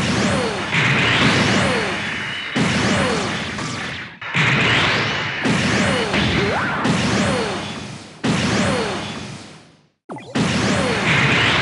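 Energy weapons fire with sharp zaps.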